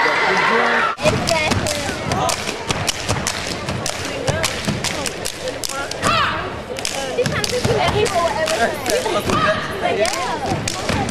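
Feet stomp and slap on a hard floor in quick rhythm, echoing in a large hall.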